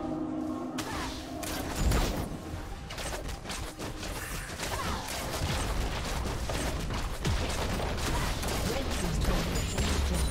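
Game spell effects crackle and blast in a busy fight.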